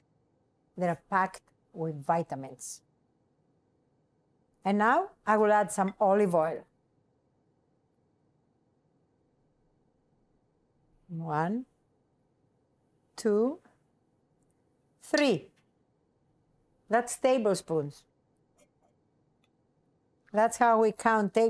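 An older woman speaks calmly and clearly to a microphone, with pauses.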